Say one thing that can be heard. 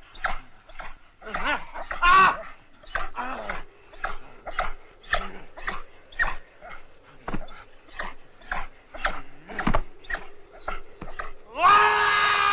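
A dog digs rapidly in snow.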